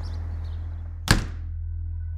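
A cardboard box thuds down onto a hard surface.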